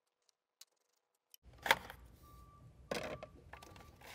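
A plastic cover clicks and rattles as hands pull it loose.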